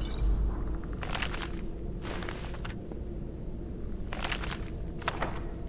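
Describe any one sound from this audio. Paper pages of a book rustle as they are turned.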